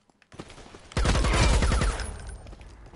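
A pistol fires a rapid burst of loud shots indoors.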